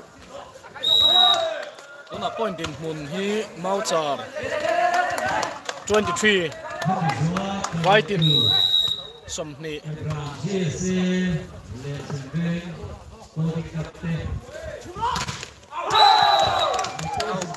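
A whistle blows shrilly.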